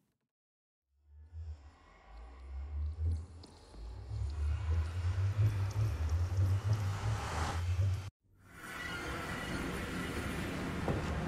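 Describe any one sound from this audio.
A portal hums with a deep, swelling, rumbling whoosh.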